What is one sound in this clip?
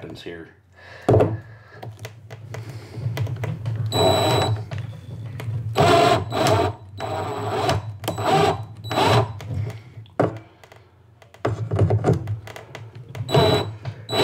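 A cordless drill whirs in short bursts, driving in a screw.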